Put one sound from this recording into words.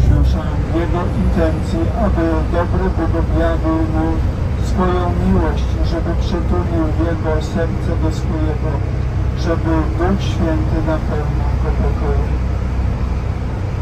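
An elderly man speaks calmly into a microphone, heard through a loudspeaker.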